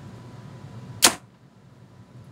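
A bowstring snaps sharply as an arrow is shot.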